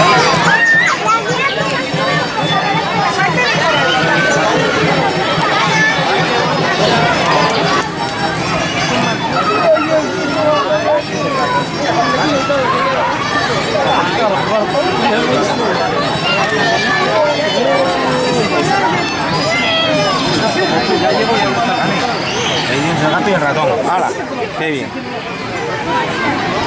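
A crowd of adults and children chatters outdoors.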